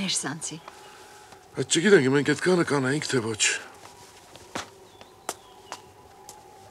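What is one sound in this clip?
An elderly man knocks hard on a wooden door.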